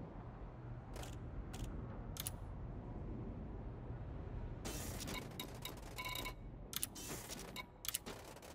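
Menu selections click and beep in quick bursts.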